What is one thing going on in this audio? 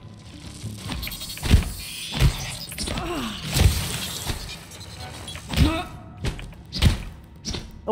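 A heavy wrench strikes a creature with repeated thuds.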